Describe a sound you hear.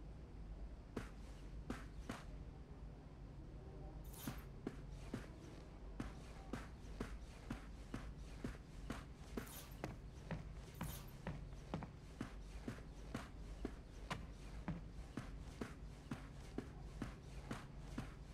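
Footsteps walk at an even pace across a wooden floor.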